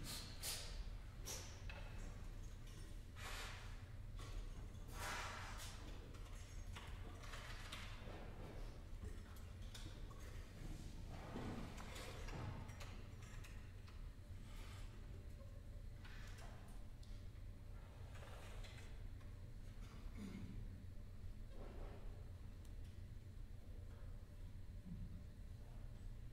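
A small ensemble plays music in a large, echoing hall.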